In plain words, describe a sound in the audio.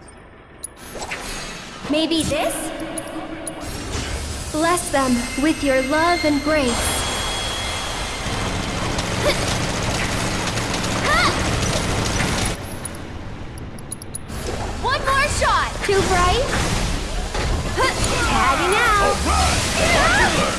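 Magic spells whoosh and sparkle.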